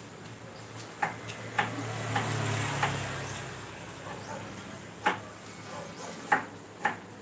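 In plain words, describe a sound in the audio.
A knife chops vegetables on a cutting board with sharp, uneven knocks.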